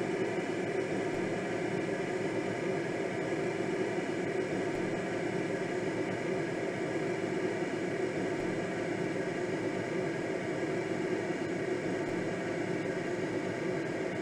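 Wind rushes steadily past a gliding aircraft.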